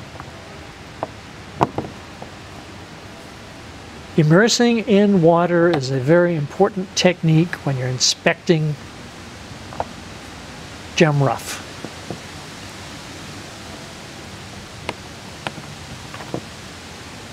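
Small stones clink and knock against a wooden surface.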